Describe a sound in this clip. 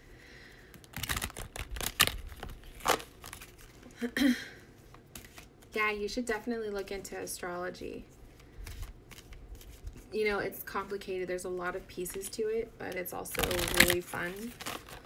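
Playing cards rustle and flick in hands.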